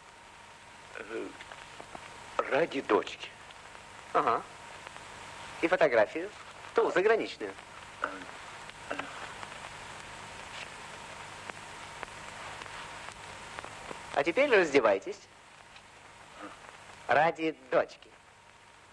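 A middle-aged man speaks close by in short, urgent bursts.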